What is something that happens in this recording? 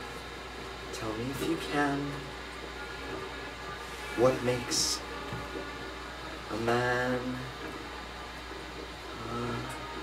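A young man sings slowly and softly.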